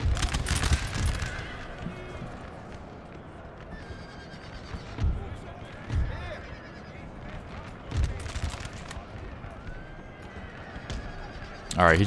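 Musket volleys crackle in bursts.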